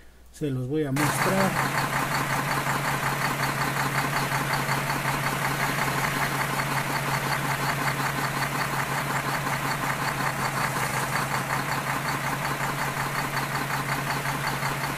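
A truck engine runs with a steady, droning hum.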